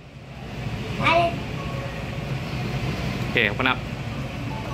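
A young child speaks softly nearby.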